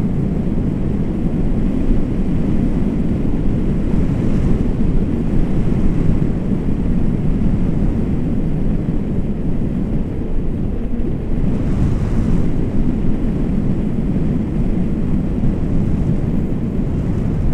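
Strong wind roars and buffets loudly throughout, as if outdoors in flight.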